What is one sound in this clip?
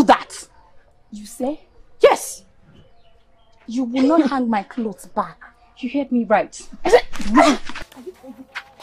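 A second woman answers, shouting back.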